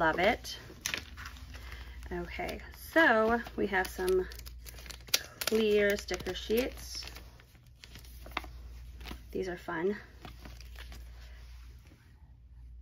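A plastic sleeve crinkles and rustles as it is handled.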